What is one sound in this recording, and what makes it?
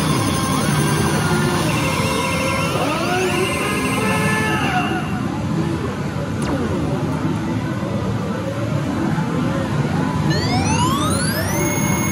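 A slot machine plays loud electronic jingles and sound effects.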